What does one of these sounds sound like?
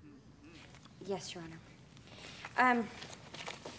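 A young woman speaks in a light, clear voice.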